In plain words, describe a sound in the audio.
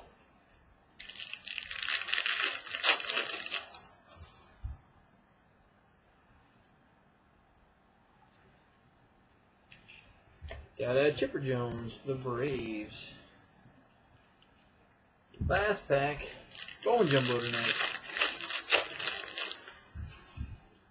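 Cards in plastic sleeves rustle and crinkle as hands shuffle through them.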